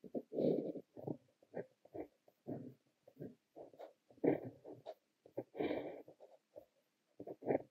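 A fountain pen nib scratches softly across paper.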